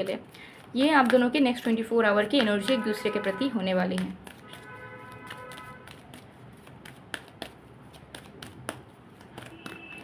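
A deck of cards rustles and taps as it is shuffled by hand.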